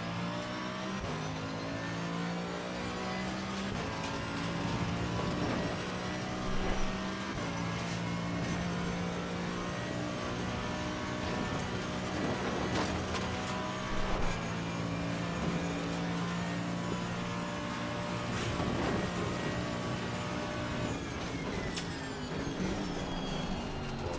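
A racing car engine roars loudly, rising in pitch through each gear and dropping with each shift.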